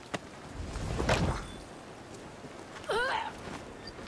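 A carriage door clicks open.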